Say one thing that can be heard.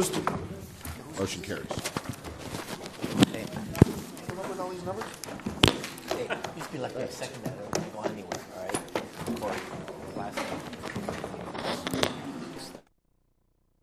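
A crowd of people chatter and murmur in a large room.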